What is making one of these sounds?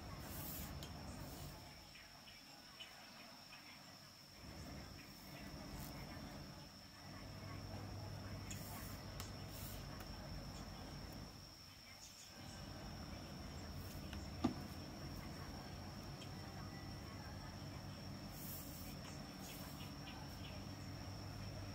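Cord rustles and slides softly as hands braid it.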